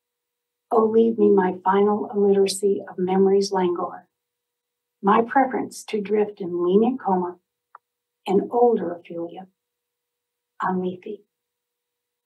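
An older woman reads aloud calmly, close to a microphone.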